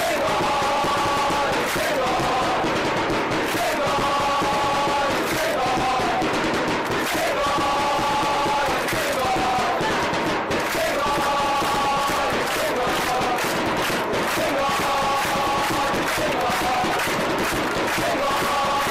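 A large crowd of fans chants loudly in rhythm outdoors.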